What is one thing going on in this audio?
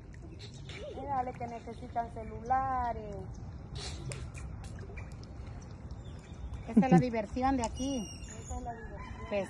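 A young girl calls out playfully nearby.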